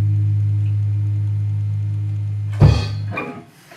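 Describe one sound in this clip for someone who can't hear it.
A low electric hum drones from a guitar amplifier, then cuts off with a thump.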